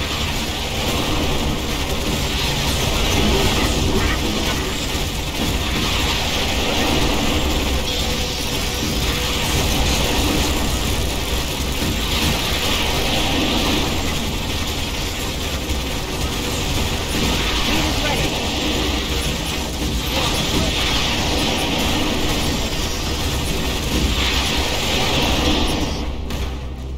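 Gunfire rattles in bursts throughout a battle.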